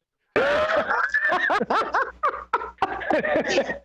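A young man laughs loudly over an online call.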